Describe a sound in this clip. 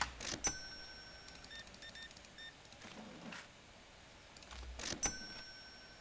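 A cash drawer clatters open.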